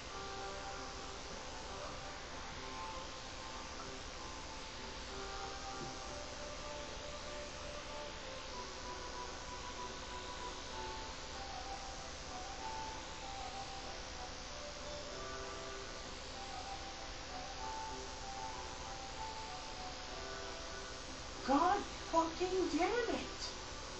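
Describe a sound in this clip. Game music plays through a small speaker, with a light melody.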